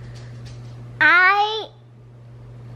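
A little girl laughs loudly close by.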